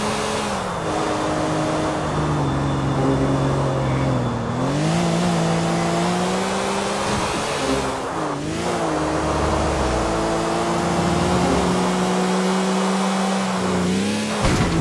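Tyres hiss on the road at speed.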